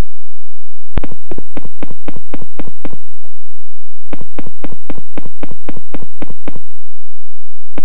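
Quick footsteps patter on hard pavement.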